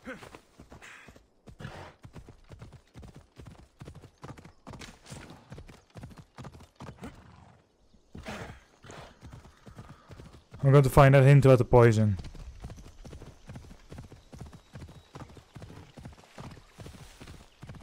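Horse hooves clop steadily over the ground at a canter.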